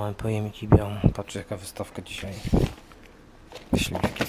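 A plastic tray crinkles as a hand handles it.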